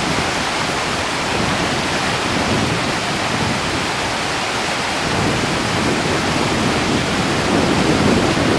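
A fast river rushes loudly over rocks, close by.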